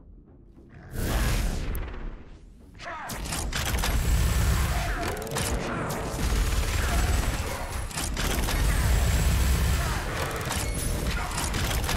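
Heavy guns fire in rapid bursts.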